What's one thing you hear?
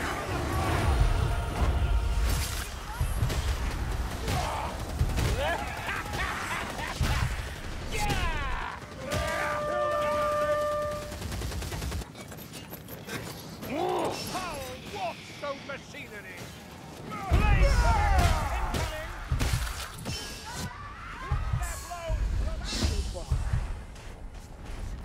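Weapons clash and slash against enemies.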